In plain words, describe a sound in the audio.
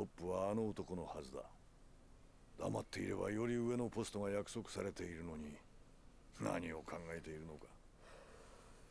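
A man speaks calmly and in a low voice.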